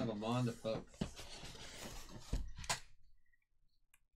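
Cardboard boxes scrape and thump as they are shifted by hand.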